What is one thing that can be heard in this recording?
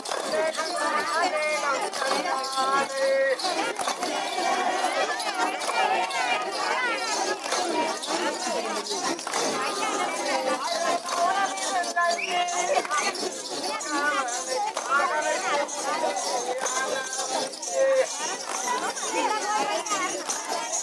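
A crowd of men and women chatters and calls out outdoors.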